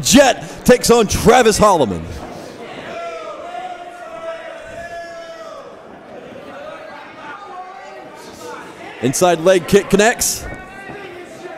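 A crowd shouts and cheers in a large hall.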